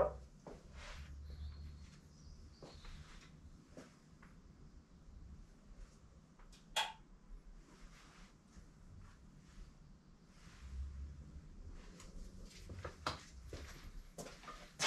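Footsteps shuffle on a hard floor nearby.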